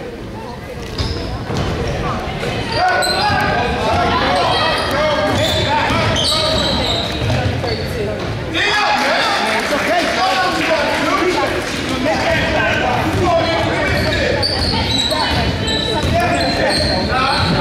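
A crowd of spectators cheers and shouts loudly in a large echoing gym.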